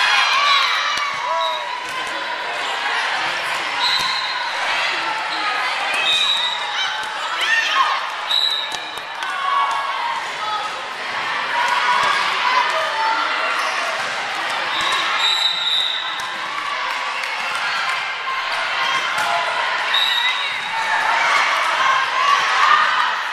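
Young women call out and chatter, echoing in a large gym.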